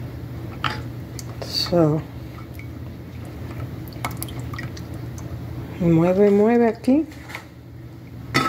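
A spatula scrapes softly around a pot as liquid is stirred.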